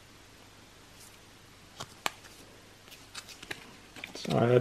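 Stiff plastic cards click and clatter softly against each other.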